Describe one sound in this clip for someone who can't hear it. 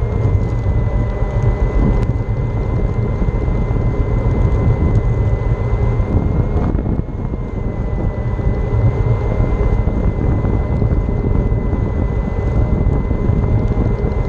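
An electric motor whines at a steady high pitch.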